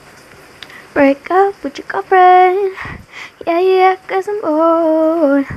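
A girl sings in held notes close by.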